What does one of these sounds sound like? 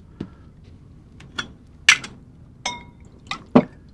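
Liquid pours from a bottle into a glass dish.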